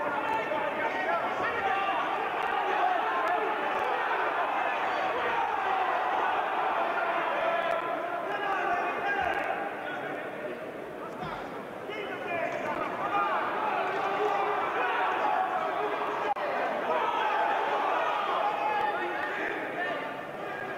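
A large crowd murmurs and calls out throughout a big hall.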